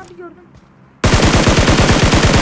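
Rapid automatic gunfire rattles close by.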